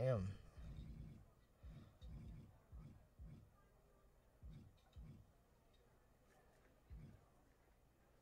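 Soft low thuds sound as a menu scrolls.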